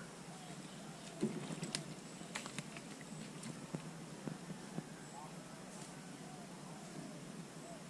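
A fish flaps and thrashes on a fishing line.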